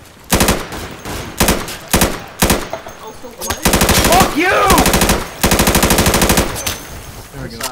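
Rifle shots fire in rapid bursts, loud and close.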